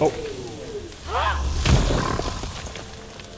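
A crackling electric blast bursts with a loud crash.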